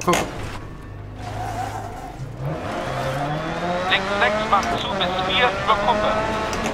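A rally car engine drones and revs up as the car accelerates.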